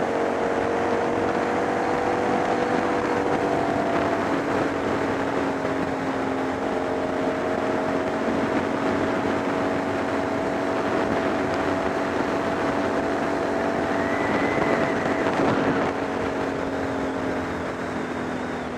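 Wind rushes past at speed.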